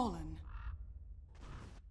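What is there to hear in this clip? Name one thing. A magic spell bursts with a whooshing crackle.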